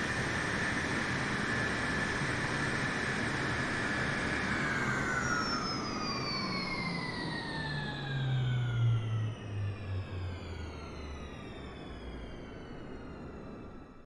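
A jet roars close overhead and passes by, its whine dropping in pitch as it fades.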